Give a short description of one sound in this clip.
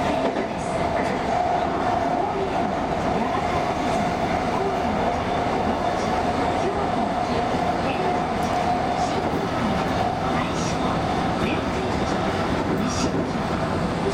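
A train's motor hums steadily from inside the cab.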